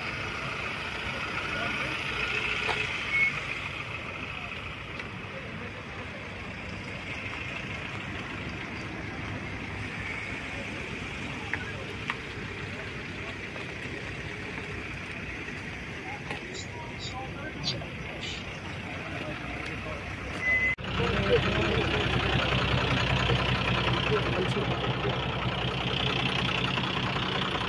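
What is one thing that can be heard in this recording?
Several men talk quietly in the distance outdoors.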